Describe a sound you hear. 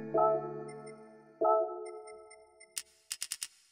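A game menu chimes with a bright tone.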